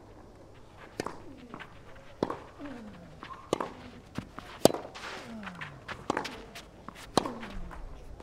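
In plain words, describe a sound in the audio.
Tennis rackets strike a ball back and forth in a rally.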